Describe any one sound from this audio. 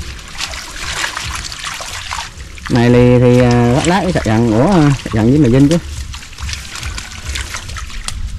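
Fish thrash and splash in shallow water.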